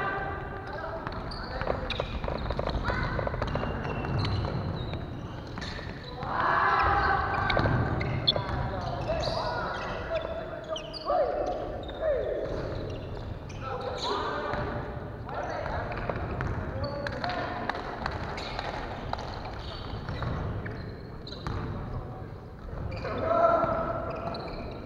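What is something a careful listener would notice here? Young men and women call out and shout to each other in a large echoing hall.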